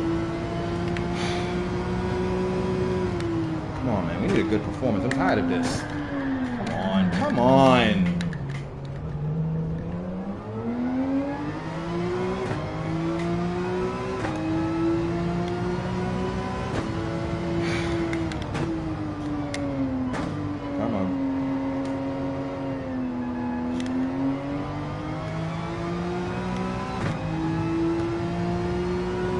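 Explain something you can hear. A racing car engine roars, revving up and down through the gears.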